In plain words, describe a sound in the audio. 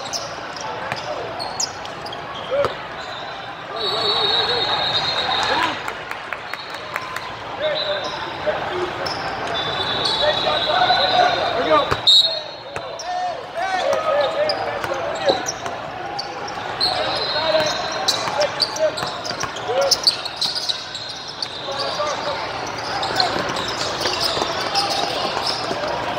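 Young men call out to each other across the hall.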